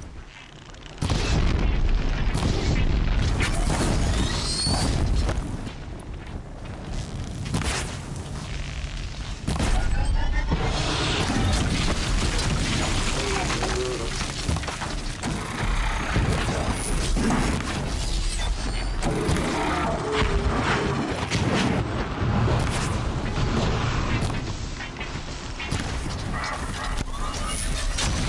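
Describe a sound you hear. A large machine stomps and whirs with heavy metallic sounds.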